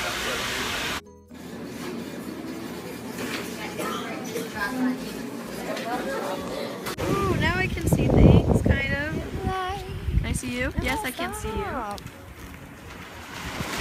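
Young women talk and laugh.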